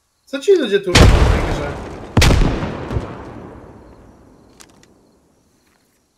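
A rifle fires two shots that echo outdoors.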